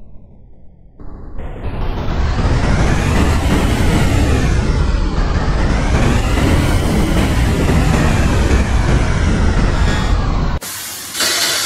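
A cart rushes along a track with a loud roaring whoosh.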